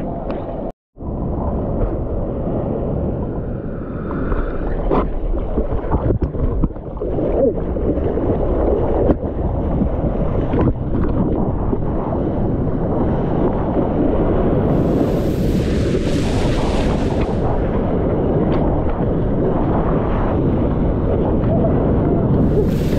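Water rushes and churns loudly around a surfboard.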